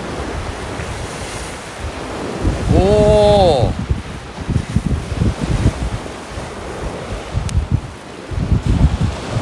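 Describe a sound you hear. A fountain firework hisses and crackles as it sprays sparks.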